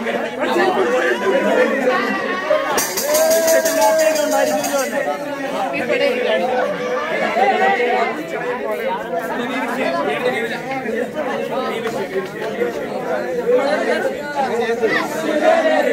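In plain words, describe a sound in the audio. A crowd of young men chatter and talk over one another nearby.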